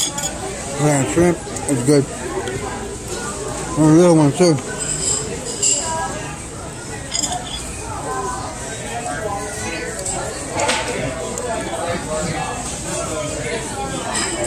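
Several adults chat at a shared table.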